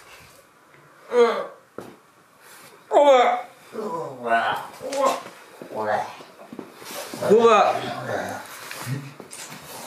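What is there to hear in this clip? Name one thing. A young man talks loudly and playfully close by.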